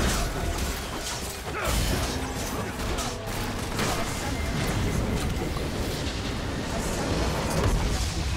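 Video game spells crackle and blast rapidly in a fight.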